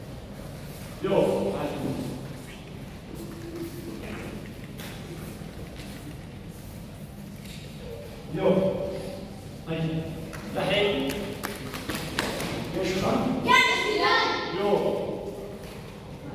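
A man gives commands in a loud voice in an echoing hall.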